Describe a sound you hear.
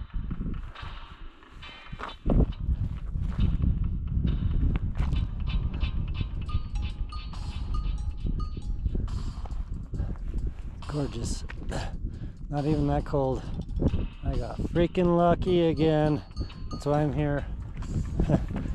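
Footsteps crunch on stony ground.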